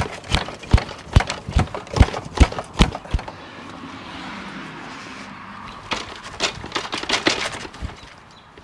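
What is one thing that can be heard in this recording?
A bike rack clicks and rattles as a bike is handled.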